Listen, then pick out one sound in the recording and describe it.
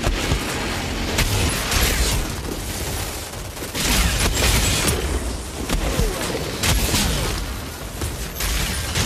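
Guns fire in rapid bursts with loud bangs.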